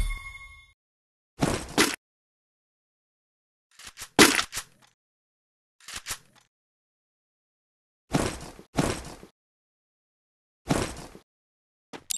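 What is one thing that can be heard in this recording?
Short electronic chimes sound as items are bought in a game menu.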